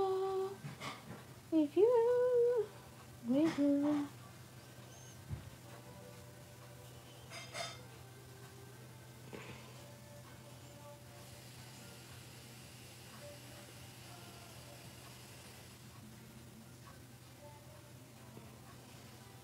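Hair rustles softly as a woman braids it.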